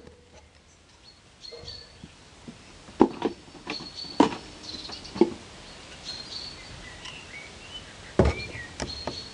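A wooden strip knocks against a wooden tabletop.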